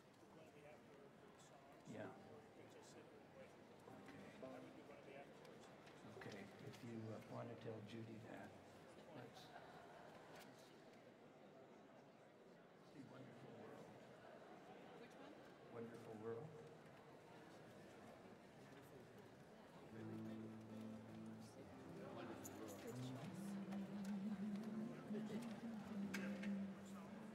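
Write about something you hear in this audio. A keyboard plays notes.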